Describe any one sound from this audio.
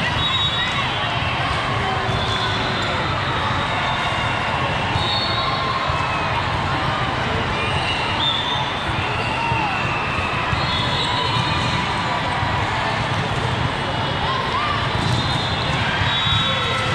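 Many voices of a crowd chatter and call out in a large echoing hall.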